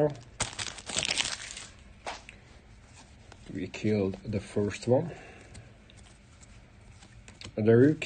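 Trading cards shuffle and slide against each other.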